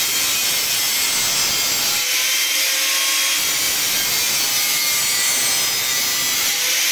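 An angle grinder screeches loudly as it cuts through a metal pipe.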